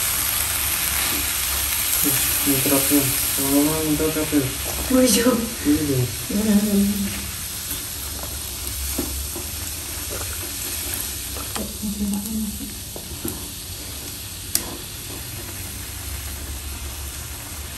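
Food sizzles in a frying pan.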